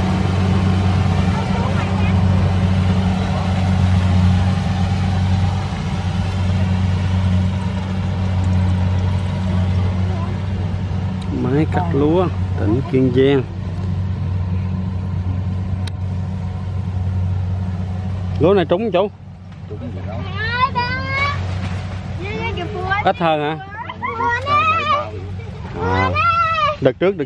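A combine harvester engine hums steadily in the distance.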